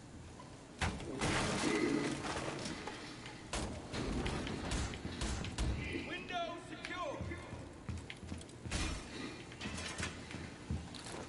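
Footsteps thud across a hard floor.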